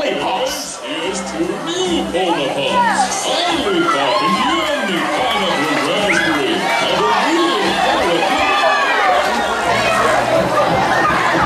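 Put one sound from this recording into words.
A large audience screams and cheers loudly in an echoing hall.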